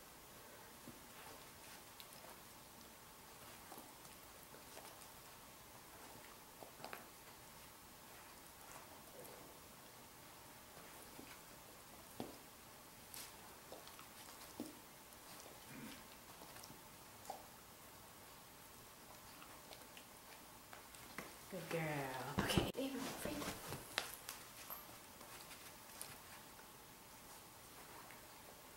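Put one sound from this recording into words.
A small dog's paws patter and scuffle on carpet.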